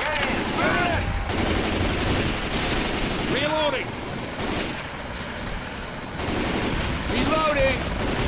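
Rapid gunshots fire close by.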